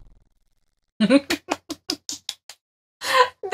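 A young woman laughs in bursts close to a microphone.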